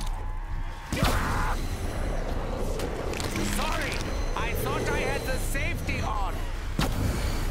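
A crackling energy weapon roars and hums.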